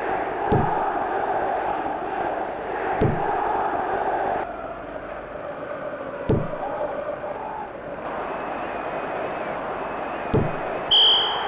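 A football is kicked with short dull thumps.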